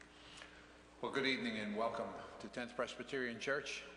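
An elderly man speaks calmly into a microphone, echoing in a large hall.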